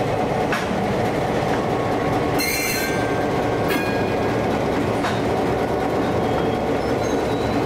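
A diesel locomotive engine rumbles steadily as it rolls past.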